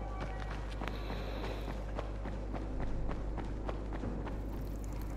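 Footsteps tread steadily across a hard floor.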